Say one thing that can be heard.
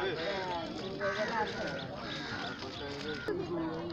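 Men and women chatter in a crowd outdoors.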